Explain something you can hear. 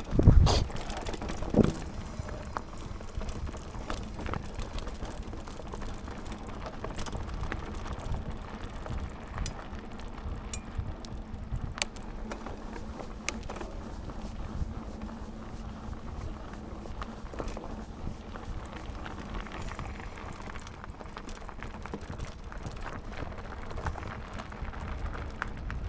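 A bicycle chain and frame rattle and clatter over bumps.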